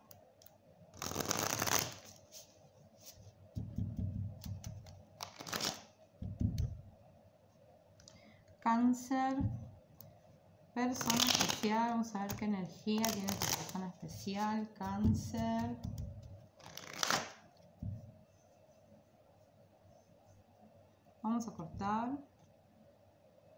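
Playing cards shuffle and riffle close by.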